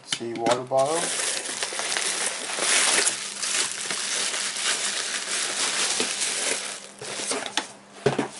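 Bubble wrap crinkles loudly as it is pulled out of a box.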